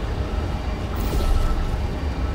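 A toy-like energy gun fires with a sharp zap.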